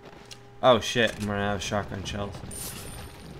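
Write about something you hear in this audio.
A short bright chime rings out as treasure is collected.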